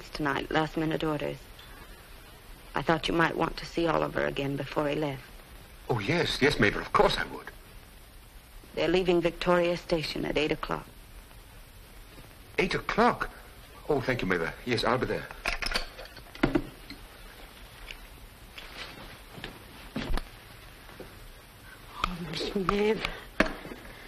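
A young woman speaks on the telephone in a soft, close voice.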